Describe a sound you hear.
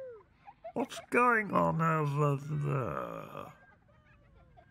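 A group of children and adults sing together.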